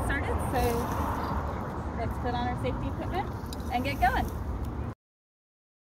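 A woman talks calmly, close by, outdoors.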